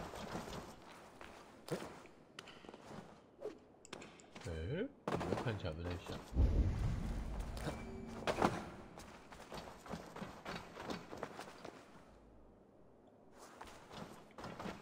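Footsteps scrape and thud on stone.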